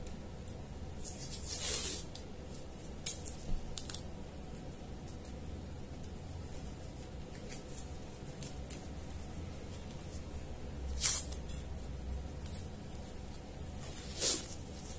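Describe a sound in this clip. Adhesive tape rips loudly as it is pulled off a roll.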